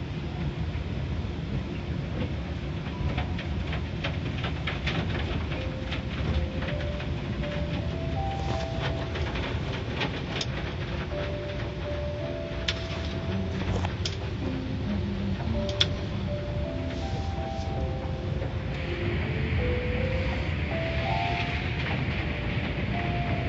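Water sprays and drums against a car windshield.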